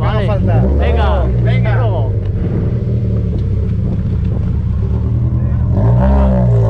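A rally car engine idles with a deep rumble.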